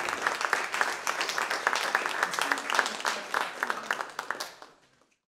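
An audience applauds, then the clapping fades out.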